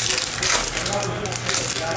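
A foil wrapper crinkles.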